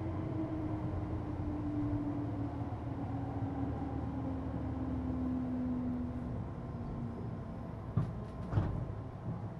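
An electric train hums steadily.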